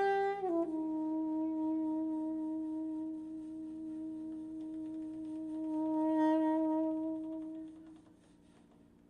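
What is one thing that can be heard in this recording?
A soprano saxophone holds a long, sustained note that slowly fades out.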